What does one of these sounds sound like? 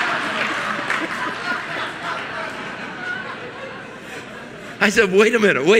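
A large audience laughs in an echoing hall.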